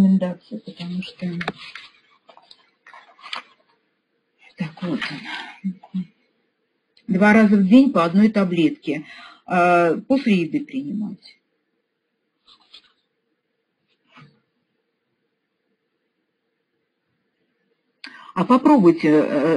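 A middle-aged woman speaks calmly over an online call, with pauses.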